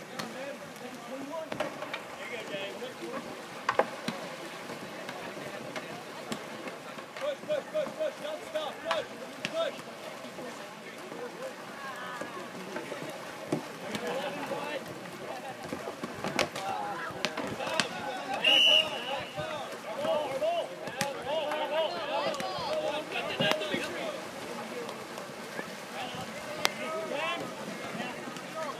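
A crowd of people shout and call out across the water outdoors.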